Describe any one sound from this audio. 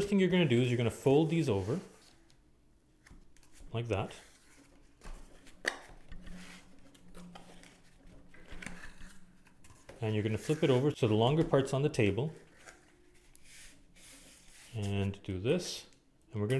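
Hands fold and crease a piece of corrugated cardboard.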